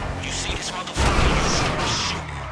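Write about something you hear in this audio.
A car crashes into a signpost with a loud bang.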